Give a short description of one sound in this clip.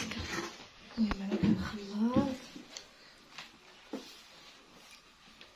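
Hands knead and rustle through a dry, crumbly mixture.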